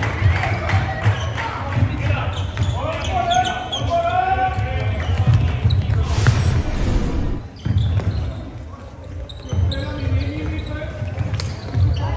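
Sneakers squeak sharply on a floor in a large echoing hall.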